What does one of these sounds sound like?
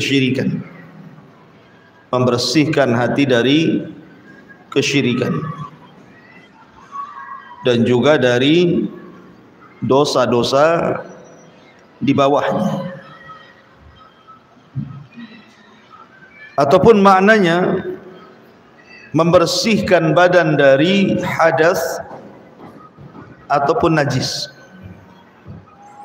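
A man chants in melodic phrases into a microphone, close and amplified, with pauses between phrases.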